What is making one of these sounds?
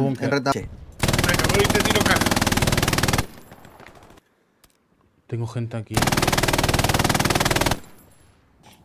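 A machine gun fires long, rapid bursts.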